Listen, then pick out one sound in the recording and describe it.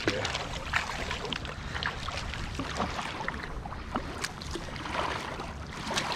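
Small waves lap against a kayak hull.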